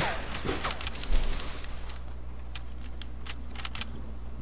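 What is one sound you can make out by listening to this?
Wooden walls clatter as they are quickly built.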